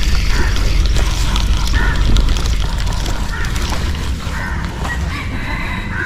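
A fishing line whizzes out during a cast.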